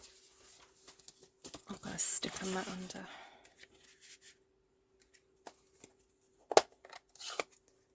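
An ink pad knocks softly as it is set down on a table.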